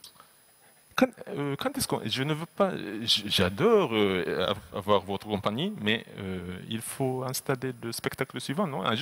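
A young man asks a question into a handheld microphone.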